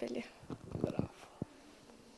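A teenage girl speaks calmly and close by.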